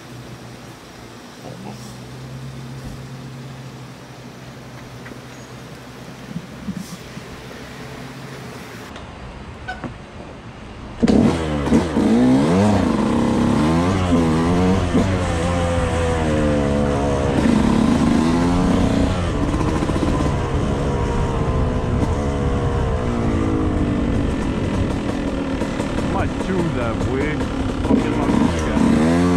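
A bicycle rolls along a pavement and street.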